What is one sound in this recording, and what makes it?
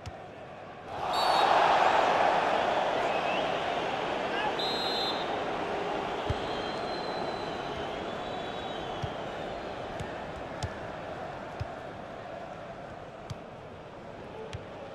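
A stadium crowd roars loudly and slowly fades.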